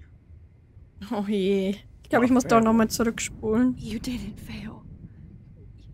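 A young woman speaks gently in reply.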